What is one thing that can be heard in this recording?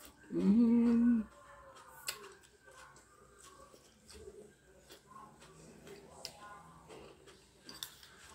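A woman chews food noisily.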